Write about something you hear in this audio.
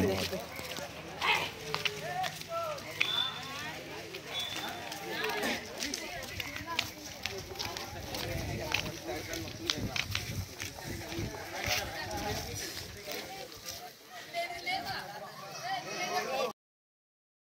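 A crowd of young people chatters while walking.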